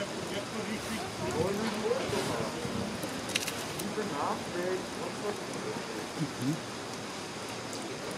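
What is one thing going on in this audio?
An animal chews and tears at raw meat close by.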